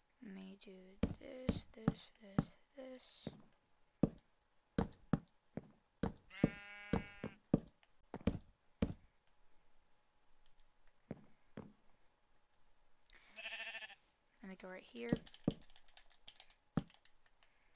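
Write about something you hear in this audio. Short wooden knocks sound as blocks are placed, one after another.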